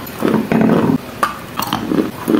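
A young woman bites into crunchy food close to a microphone.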